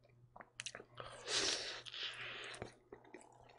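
Crisp pizza crust crunches as a man bites into it.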